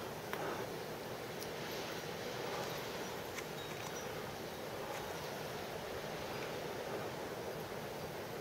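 Strong wind blows steadily outdoors.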